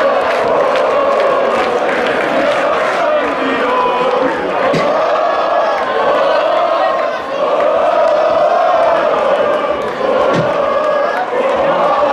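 A huge crowd chants and sings loudly in unison in a large stadium.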